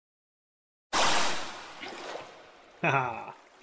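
Water splashes as it pours out.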